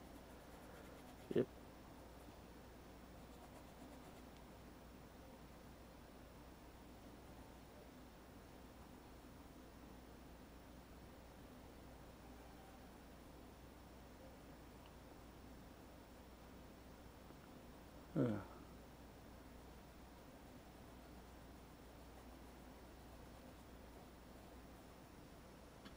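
A paintbrush softly brushes across canvas.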